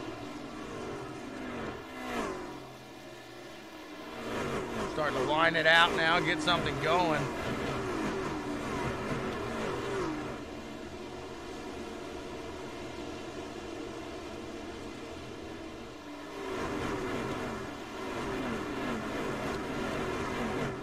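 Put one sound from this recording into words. Racing truck engines roar steadily as a pack speeds around a track.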